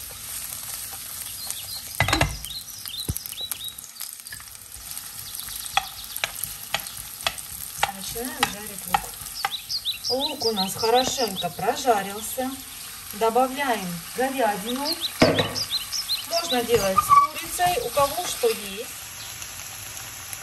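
Onions sizzle softly in hot oil in a frying pan.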